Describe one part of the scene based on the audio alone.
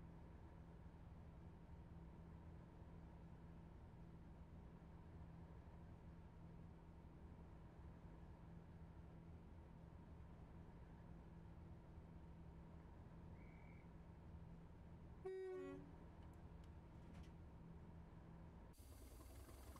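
A diesel train engine hums steadily from inside the cab.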